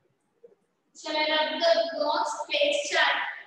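A young woman speaks clearly and with animation close to the microphone.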